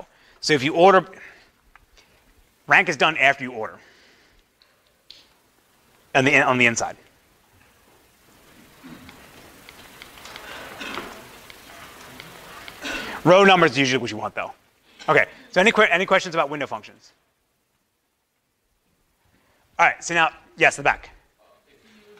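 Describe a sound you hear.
A man lectures through a microphone, speaking in short bursts with pauses.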